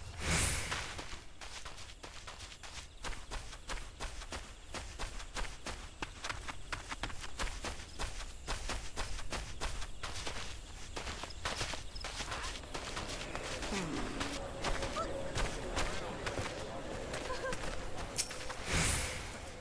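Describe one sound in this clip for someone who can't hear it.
Quick footsteps patter across grass and ground.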